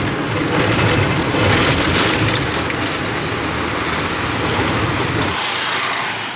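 A vehicle engine rumbles low and steady from inside a moving car.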